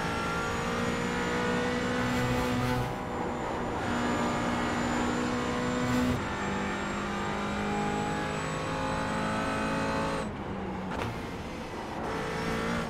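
A racing car engine roars loudly, its pitch rising and falling as the gears shift.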